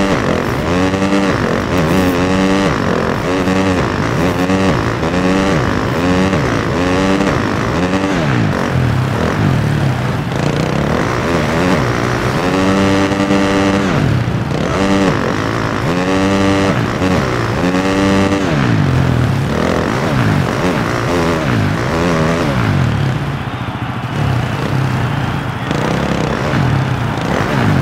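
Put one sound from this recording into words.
A motorcycle engine revs up and down repeatedly, rising and falling in pitch.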